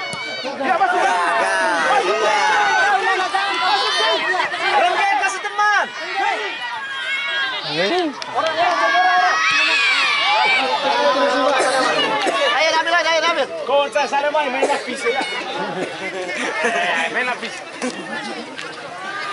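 A large crowd shouts and cheers excitedly outdoors.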